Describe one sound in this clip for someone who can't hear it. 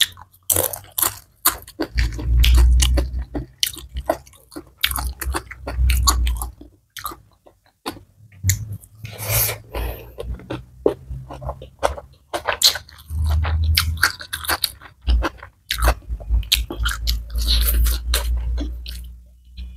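A young woman chews food loudly and wetly close to a microphone.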